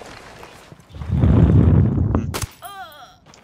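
Gunshots crack in a quick burst.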